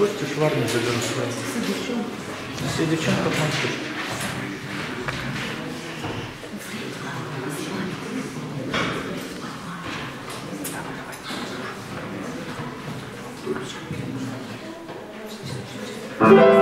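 A saxophone plays a melody in a room with some echo.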